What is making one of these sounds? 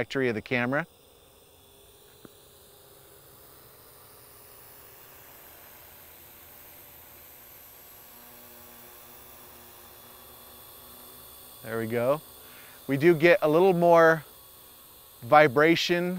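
A drone's motors hum steadily overhead.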